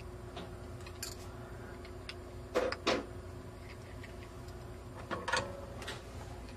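Small metal parts click and tap as they are picked up.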